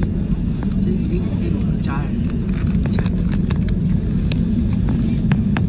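The airliner rattles and bumps as it rolls along the runway.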